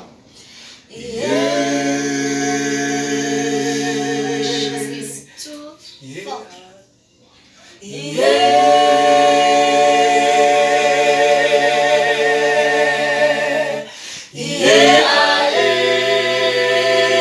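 A group of young men and women sing together in close harmony, holding long chords.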